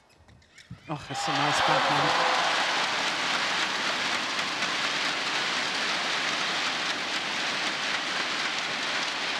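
A large crowd applauds and cheers loudly in a big echoing hall.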